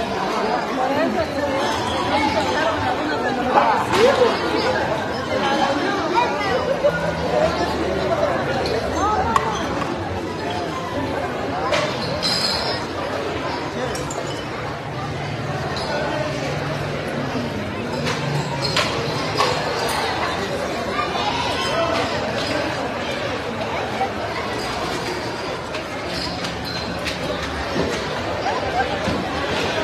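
A crowd of men and women chatters loudly all around, in a large echoing hall.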